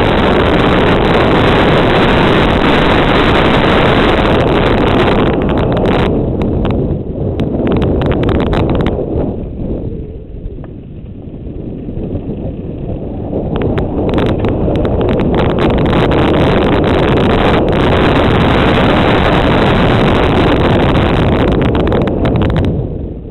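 Wind roars loudly past a rider moving fast downhill.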